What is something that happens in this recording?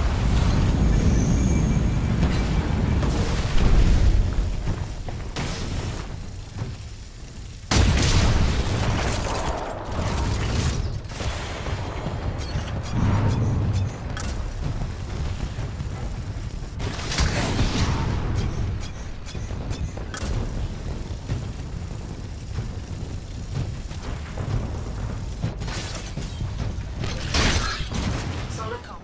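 A heavy machine gun fires in rapid, loud bursts.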